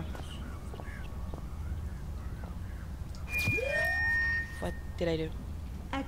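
A glowing orb fizzes and chimes as it sparkles.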